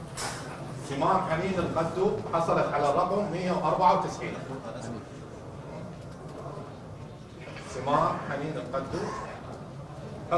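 A man speaks into a microphone, reading out clearly.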